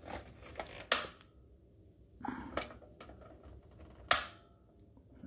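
A gas heater's igniter clicks sharply a few times.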